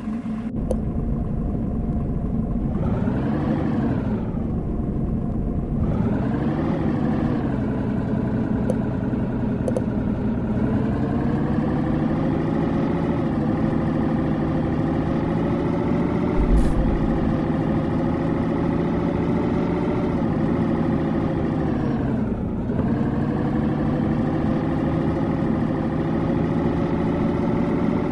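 A truck engine hums steadily and rises and falls in pitch as it speeds up and slows down.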